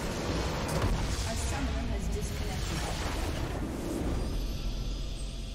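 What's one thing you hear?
A large structure explodes with a loud crumbling blast.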